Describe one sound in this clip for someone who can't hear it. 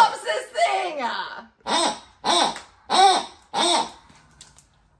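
A woman laughs heartily close by.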